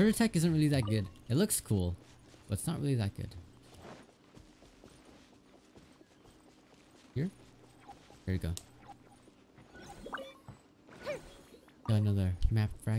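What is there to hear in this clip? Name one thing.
Light footsteps run over grass and dirt.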